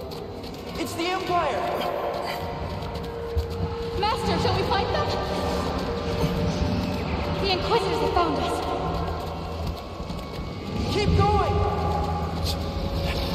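Laser shots zip past.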